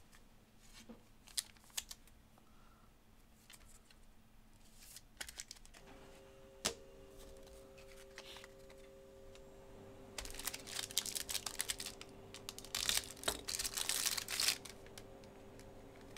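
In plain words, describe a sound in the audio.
Plastic card wrappers crinkle and rustle in hands.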